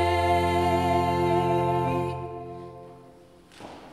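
Two women sing a long held note together in an echoing hall, and the note fades away.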